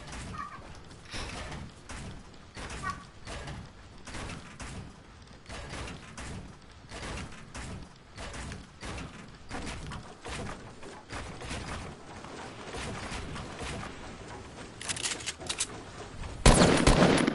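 Quick clicks and thuds of building pieces snap into place.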